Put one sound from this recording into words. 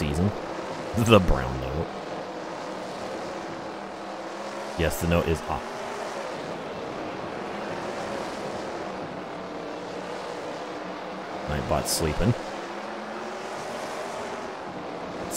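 A race car engine drones steadily throughout.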